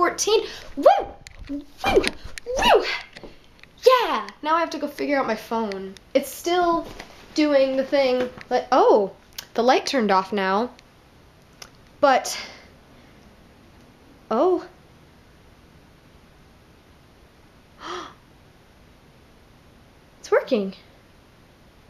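A young woman talks close up, first with animation and then in short, quiet bursts.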